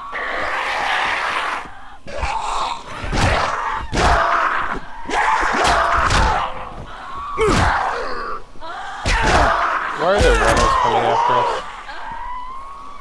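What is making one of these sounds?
A man grunts and shouts while fighting.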